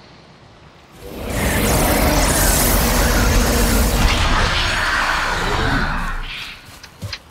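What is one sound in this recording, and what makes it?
A magical altar erupts with a loud rushing roar.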